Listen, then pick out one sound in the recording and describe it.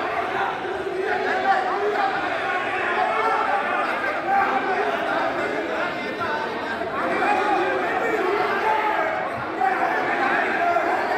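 A crowd of men shouts and argues loudly in an echoing hall.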